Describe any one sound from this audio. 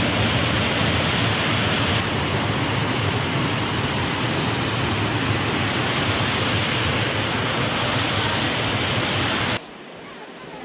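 A small waterfall roars into a pool.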